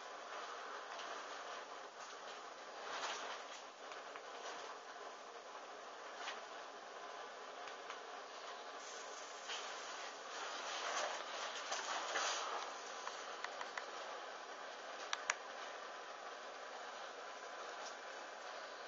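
Burning fabric crackles and hisses softly.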